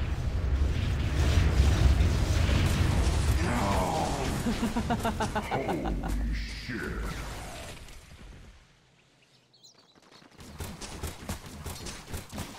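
Video game combat sounds clash and crackle in a busy battle.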